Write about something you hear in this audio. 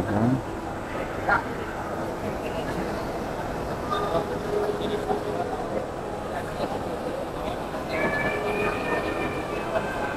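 A crowd of people chatters in a large, busy indoor hall.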